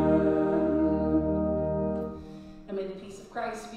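An organ plays a sustained chord that ends.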